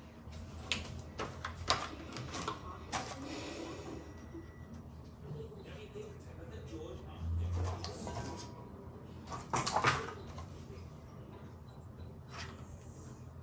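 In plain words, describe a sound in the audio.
Plastic makeup cases click and clatter in a woman's hands.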